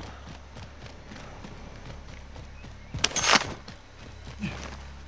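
Footsteps thud steadily on a hard surface.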